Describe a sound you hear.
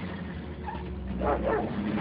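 A dog barks loudly close by.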